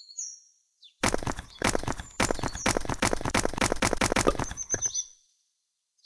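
Blocks shatter with a rapid series of crunching smashes.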